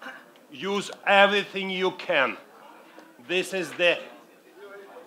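A middle-aged man speaks loudly and with animation into a headset microphone.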